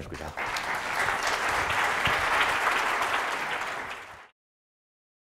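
An audience applauds in a room and the clapping fades out.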